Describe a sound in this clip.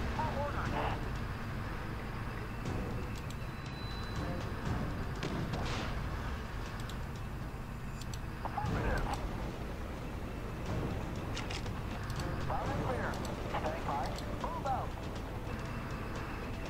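Tank guns fire in sharp, repeated bangs.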